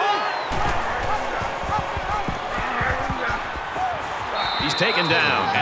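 Football players crash together with heavy thuds of pads.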